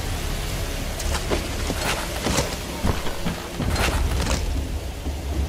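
A sword strikes rock with sharp, crunching blows.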